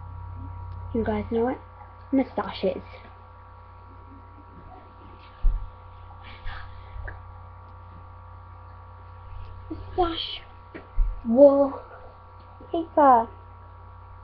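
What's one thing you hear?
A young girl talks close to a microphone with animation.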